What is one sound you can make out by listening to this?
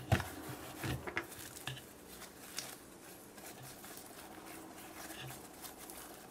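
Sticky slime squelches and crackles as hands squeeze and stretch it.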